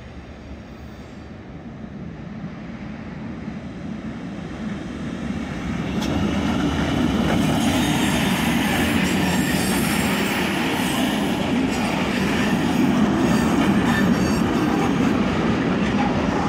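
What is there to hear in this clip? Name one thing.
A freight train approaches and rumbles loudly past, wheels clattering over the rails.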